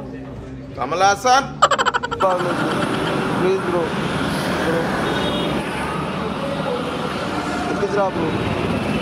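A young man speaks with animation close by.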